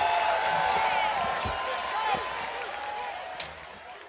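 A marching band plays loud brass music in a large open stadium.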